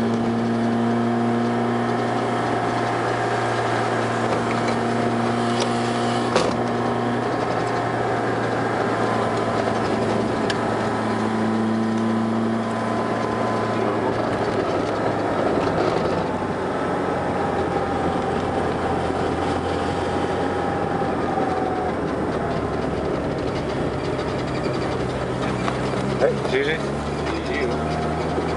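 Tyres crunch and rumble over a rough gravel road.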